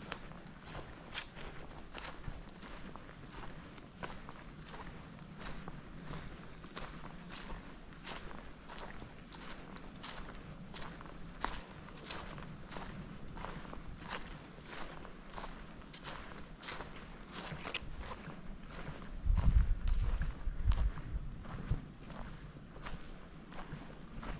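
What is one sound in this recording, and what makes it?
Footsteps crunch steadily on a dirt path outdoors.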